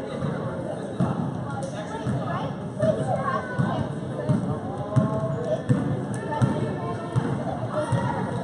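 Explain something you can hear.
A basketball bounces on a hard wooden court.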